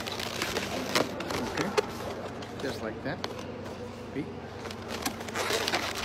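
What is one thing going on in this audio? Rubber balloons squeak and rub as they are twisted.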